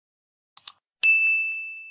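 A small bell rings and fades.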